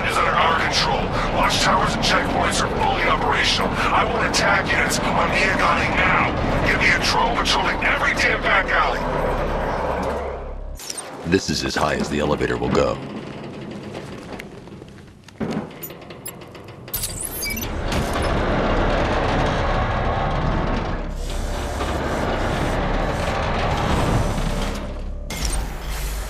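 A heavy vehicle engine rumbles as it drives.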